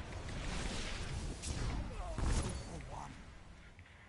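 A crackling energy blast bursts with a deep boom.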